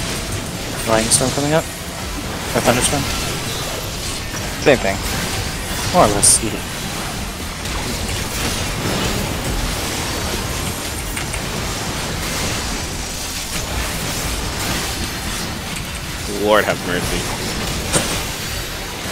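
Lightning spells crackle and crash in a game battle.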